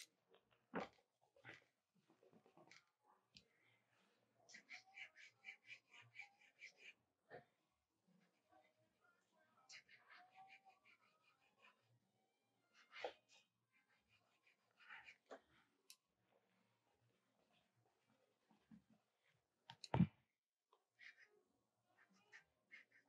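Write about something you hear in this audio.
A pencil scratches and scrapes on paper in quick strokes.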